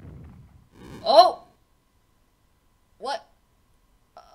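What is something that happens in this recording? A short springy video game jump sound boings twice.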